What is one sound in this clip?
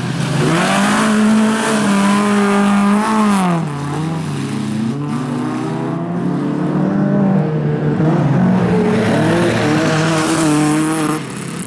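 Tyres skid and spray loose gravel.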